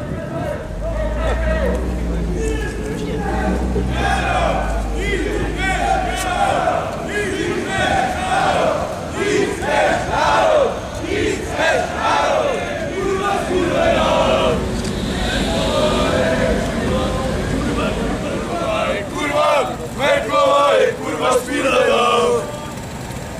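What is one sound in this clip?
A crowd of marching men chants in reply.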